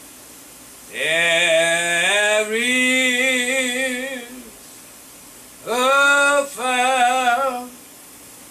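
An older man chants in a steady sung voice into a microphone.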